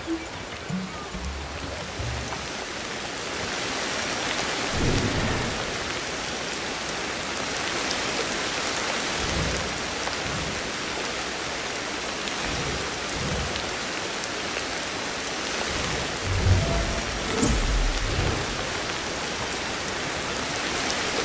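Leaves and branches rustle as a person climbs through a tree.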